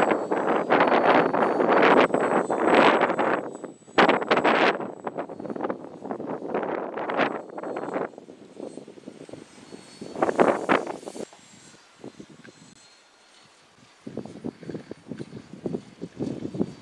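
A small model aircraft engine buzzes in the air overhead.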